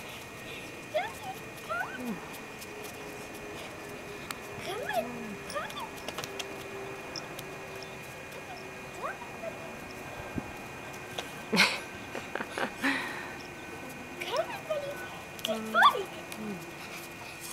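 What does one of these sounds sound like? A young girl talks playfully to a puppy close by.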